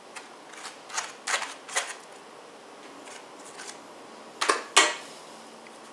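A knife scrapes and taps on a plate.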